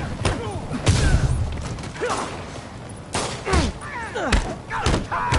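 Punches and kicks land with heavy, sharp thuds.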